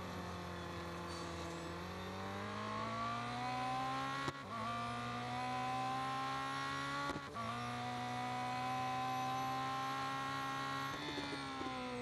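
A racing car engine roars, rising in pitch as it accelerates.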